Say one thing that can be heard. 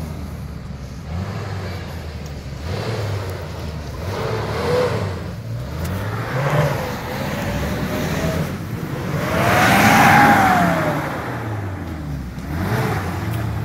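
Another off-road vehicle's engine grinds and revs along a forest track.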